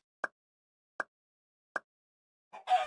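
Three short countdown beeps sound one after another.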